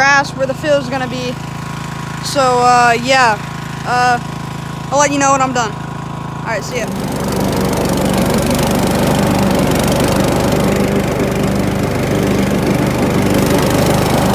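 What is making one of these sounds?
A riding lawn mower engine drones steadily.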